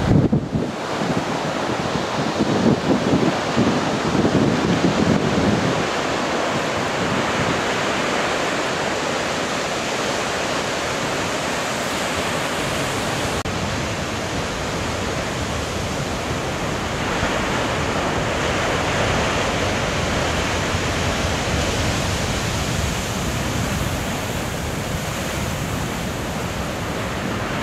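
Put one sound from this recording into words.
Wind blows hard outdoors.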